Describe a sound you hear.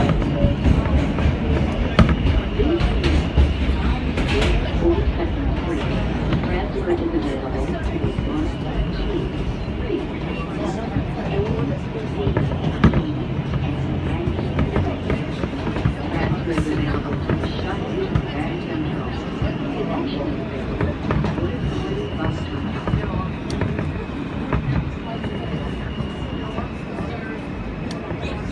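Metal wheels squeal thinly on the rails now and then.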